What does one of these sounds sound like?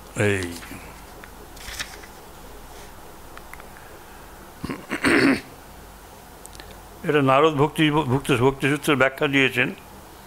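An elderly man speaks calmly into a microphone, pausing between phrases.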